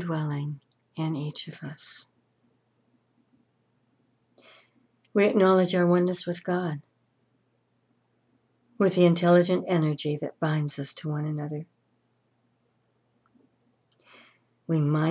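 An elderly woman speaks calmly and close by, with pauses.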